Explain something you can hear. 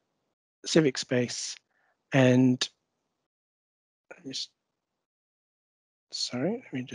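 A man speaks calmly over an online call, in short bursts with pauses.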